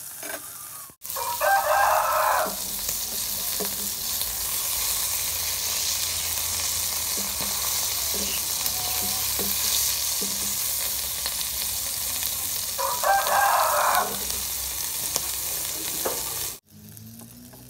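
Food sizzles loudly in hot oil in a frying pan.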